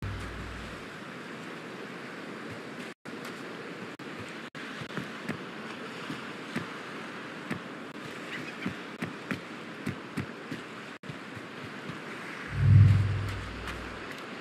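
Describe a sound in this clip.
Waves wash gently onto a shore.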